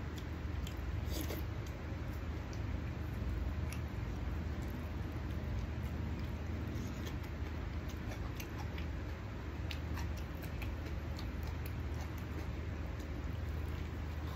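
A man chews food noisily, close by.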